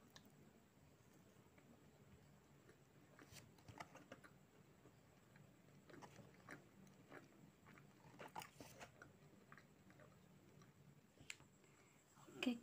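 A young woman chews and smacks her lips close up.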